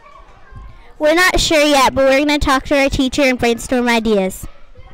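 A young girl speaks with animation into a microphone.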